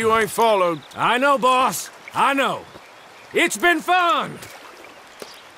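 A younger man answers calmly.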